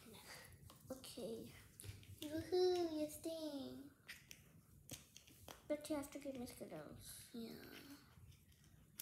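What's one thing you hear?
A young girl talks close by in a high voice, with animation.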